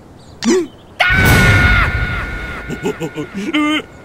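A cartoon creature screams loudly in fright.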